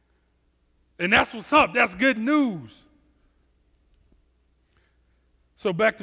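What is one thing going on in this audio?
A man speaks with animation into a headset microphone, heard over loudspeakers.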